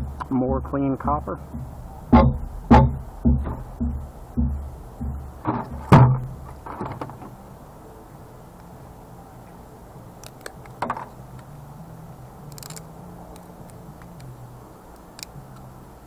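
Small plastic and metal parts clatter and knock on a hard surface.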